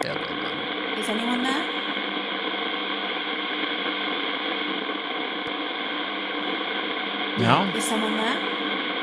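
A young woman speaks briefly into a close microphone.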